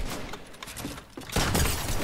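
Wooden walls snap quickly into place.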